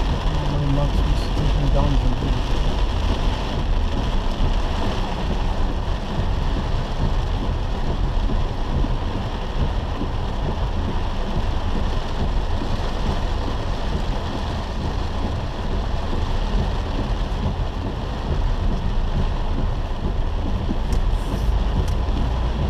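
Windscreen wipers sweep back and forth across the glass.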